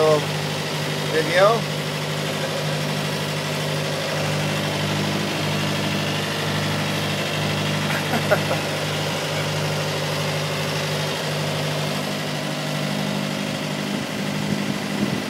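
A motorboat engine hums as the boat runs under way.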